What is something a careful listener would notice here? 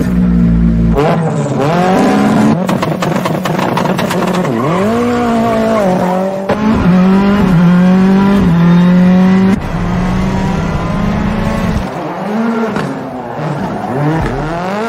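A rally car engine revs loudly and roars.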